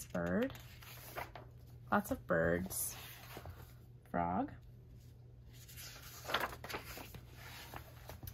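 Paper pages rustle as a book's pages are turned.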